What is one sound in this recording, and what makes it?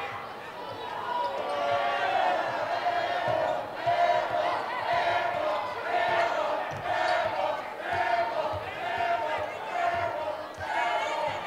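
A crowd chants loudly in a steady rhythm.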